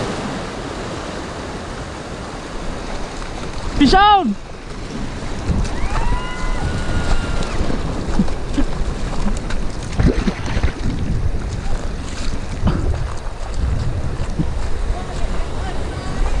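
Waves wash and fizz over rocks close by.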